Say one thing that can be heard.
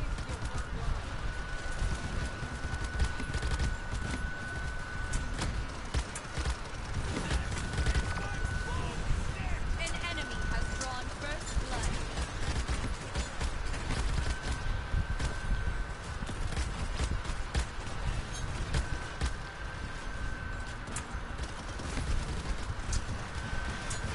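Shots and blasts pop and thud in quick bursts.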